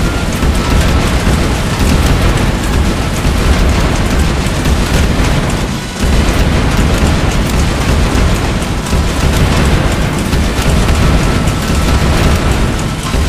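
Cartoonish explosions and crashes rumble and pop without a break.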